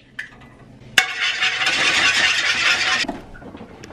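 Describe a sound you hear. An egg sizzles in a hot pan.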